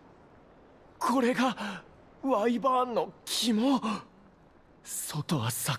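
A young man exclaims in surprise.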